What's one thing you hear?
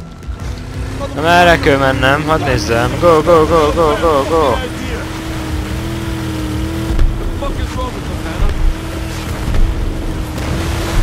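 A boat engine drones steadily while speeding over water.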